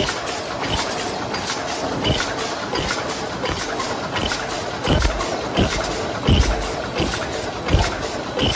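A machine whirs and clatters steadily.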